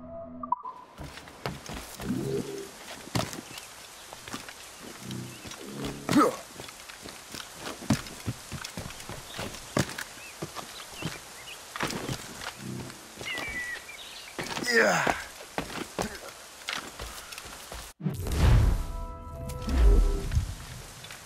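Footsteps patter quickly over grass and wooden boards.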